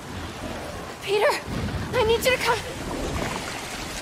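A young woman speaks urgently and close by.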